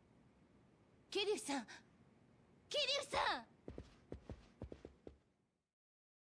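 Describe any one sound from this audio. A young woman calls out anxiously.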